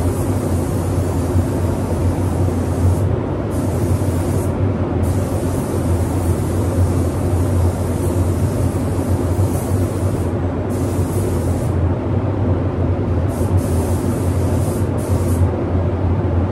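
A paint spray gun hisses in bursts.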